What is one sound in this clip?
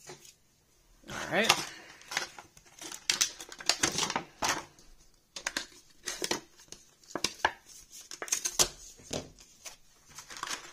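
Plastic packaging crinkles and rustles in someone's hands.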